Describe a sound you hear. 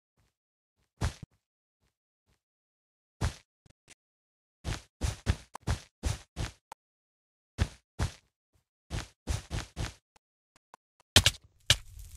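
Blocks thud one after another as they are placed in a video game.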